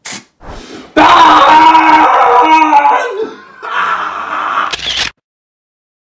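A young man screams loudly in pain close by.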